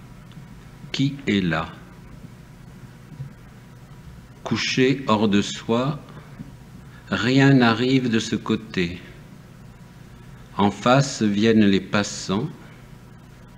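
An elderly man speaks calmly and slowly into a microphone, pausing between phrases.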